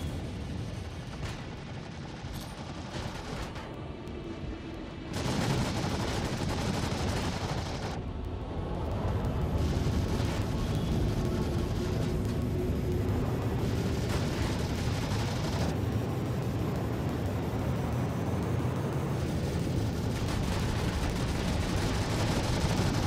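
A spacecraft engine rumbles steadily and grows louder.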